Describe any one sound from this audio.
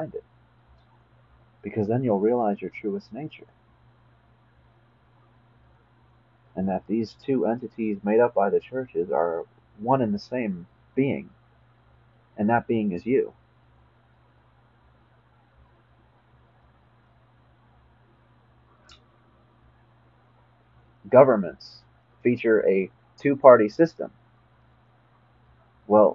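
A young man speaks calmly and close up, with pauses.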